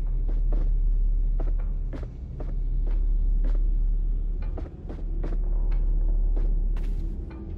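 Footsteps thud on wooden stairs and floorboards at a steady walking pace.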